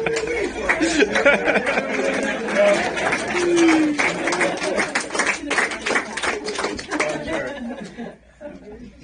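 A small crowd claps and cheers nearby.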